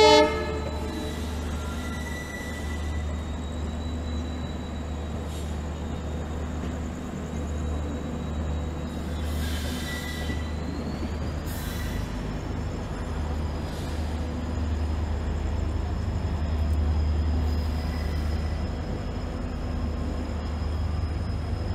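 Steel wheels clatter over rail joints.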